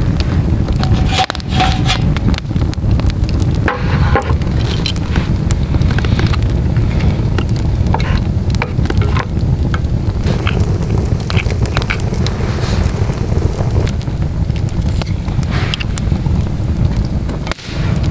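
A wood fire crackles and roars steadily.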